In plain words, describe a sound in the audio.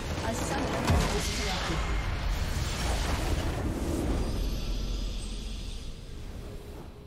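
A large structure explodes with a loud, rumbling blast that slowly fades.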